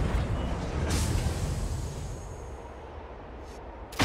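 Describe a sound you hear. Sparks crackle and fizz.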